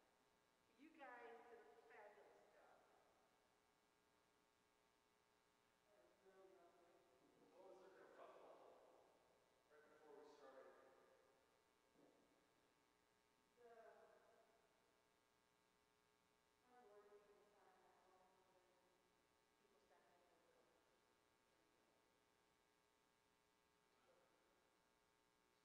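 A piano plays slow notes that ring out in a large echoing hall.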